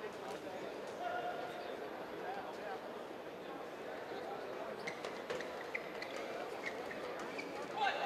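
A racket strikes a shuttlecock with sharp pops.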